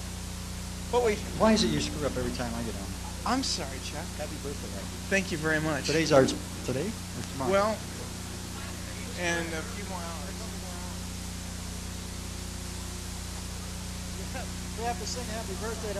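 A man answers calmly, close to the microphone.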